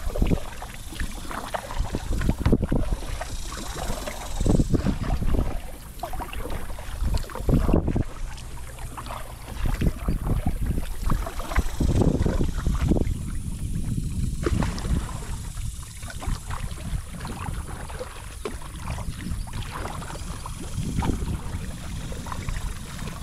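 Wind rumbles across the water outdoors.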